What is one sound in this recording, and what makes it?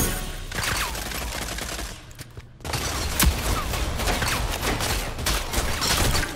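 Single pistol shots crack one after another.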